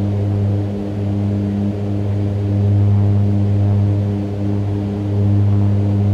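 Aircraft engines drone steadily with a low hum.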